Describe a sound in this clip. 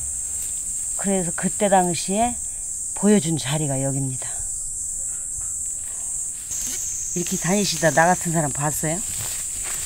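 An elderly woman talks calmly and close by.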